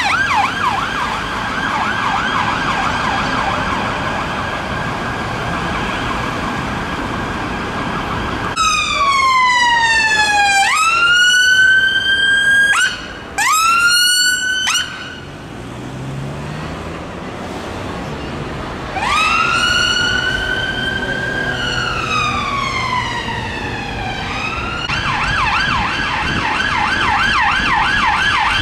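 An emergency siren wails and yelps close by, rising and falling quickly.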